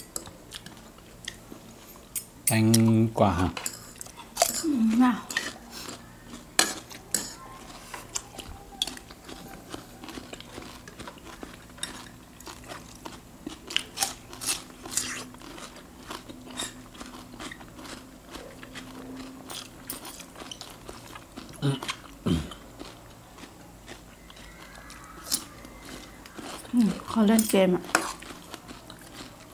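A man and a woman chew crunchy food close to a microphone.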